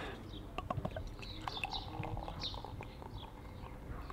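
Beer pours and fizzes into a glass.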